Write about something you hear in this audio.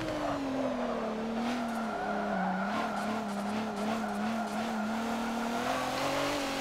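Tyres squeal as a car slides through a corner.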